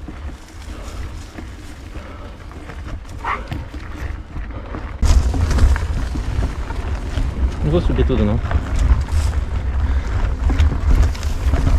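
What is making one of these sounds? Wind buffets the microphone with a low, gusty rumble.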